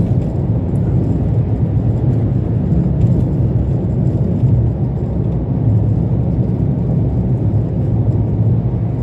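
Tyres rumble steadily on a rough road.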